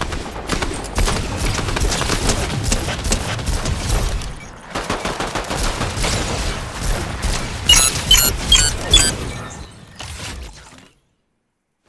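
Energy blasts fire in rapid bursts.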